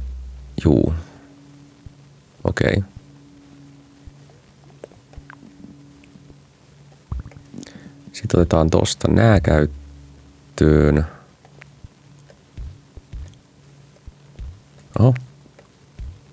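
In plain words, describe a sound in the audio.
A young man speaks in short bursts close to a microphone, with pauses between them.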